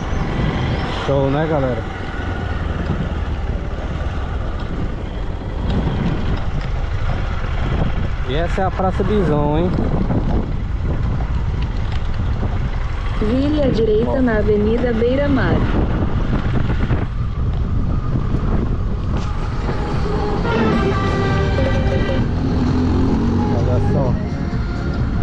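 A motorcycle engine revs up and down several times.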